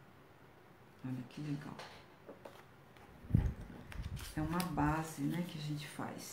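A woman talks calmly and closely.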